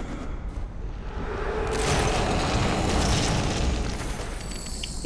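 A magical shimmering whoosh swells and fades.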